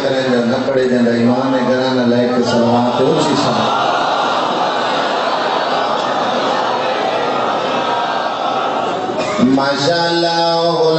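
A man chants loudly and melodically into a microphone, heard through a loudspeaker in an echoing space.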